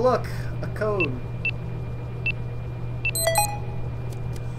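Electronic keypad buttons beep as a code is entered.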